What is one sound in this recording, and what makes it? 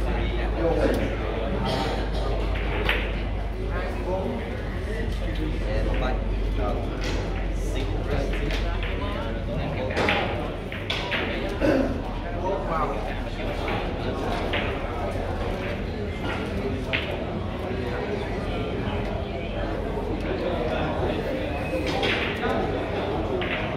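Billiard balls click against each other and the cushions.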